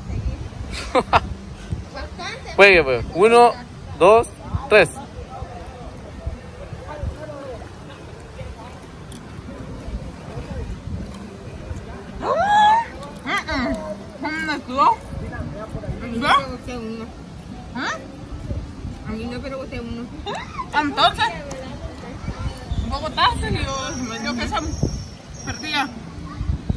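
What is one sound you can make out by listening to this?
Young women laugh and shout excitedly close by.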